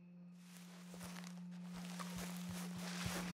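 A horse's hooves thud softly on grass.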